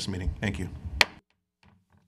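A gavel knocks once on a table.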